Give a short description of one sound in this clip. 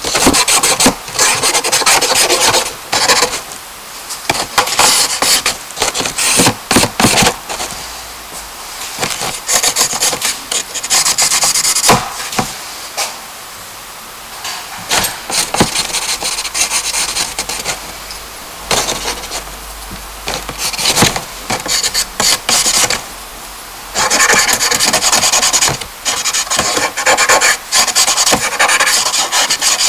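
Charcoal scratches and scrapes across paper in quick strokes.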